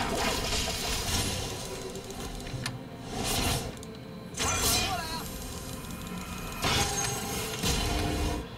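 Game spell effects whoosh and crackle in bursts.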